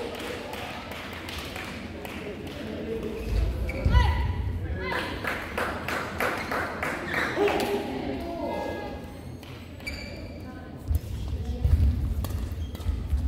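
A badminton racket strikes a shuttlecock with sharp pops.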